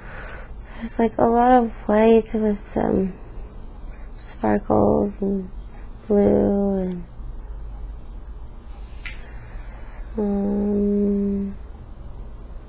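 A woman groans and moans in pain close by.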